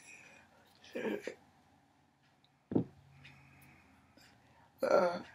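An elderly woman speaks calmly and close by, in short bursts.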